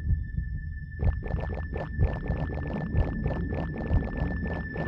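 Footsteps patter quickly across hard ground.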